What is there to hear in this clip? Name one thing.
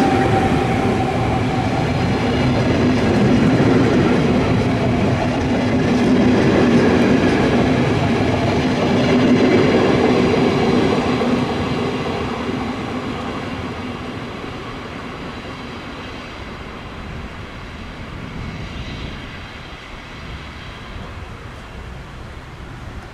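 A passenger train rumbles past close by, then fades into the distance.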